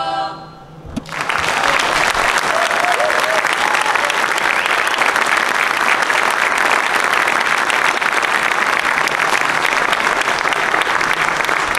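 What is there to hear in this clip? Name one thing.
A large audience applauds loudly in an echoing hall.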